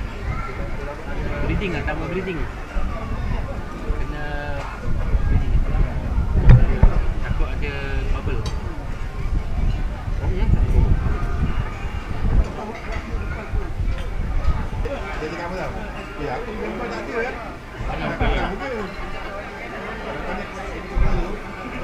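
Several men talk and chat casually close by.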